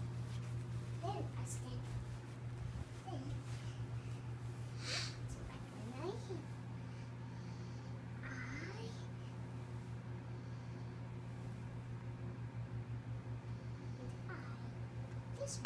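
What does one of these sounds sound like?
A small girl babbles softly to herself.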